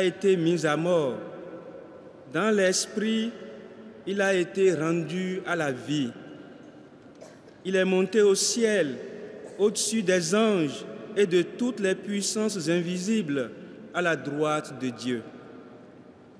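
A man reads aloud calmly through a microphone in a large echoing hall.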